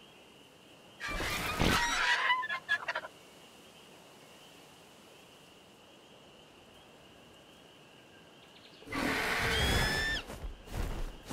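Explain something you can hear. A large bird gives a sharp screech.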